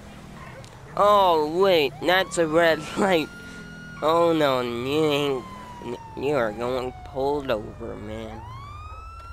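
A police siren wails and yelps loudly.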